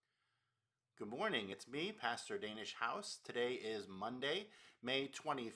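A middle-aged man speaks warmly and with animation, close to a microphone.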